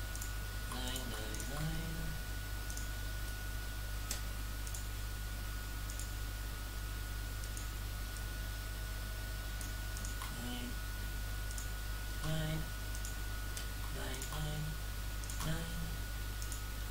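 A man speaks briefly now and then, close to a microphone.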